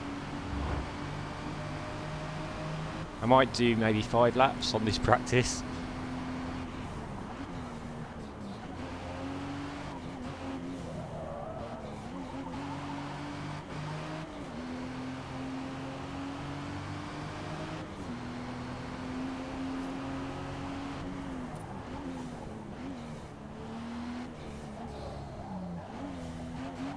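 A car engine drones steadily, rising and falling in pitch as it speeds up and slows for corners.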